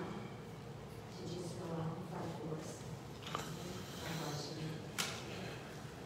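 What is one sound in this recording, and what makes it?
A woman speaks into a microphone in a large echoing room.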